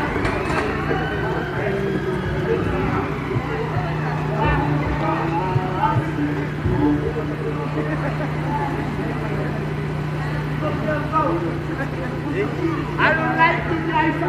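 A car engine hums as the car pulls up close and idles.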